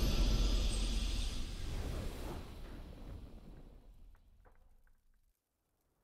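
A deep, booming victory sound from a video game swells and slowly fades away.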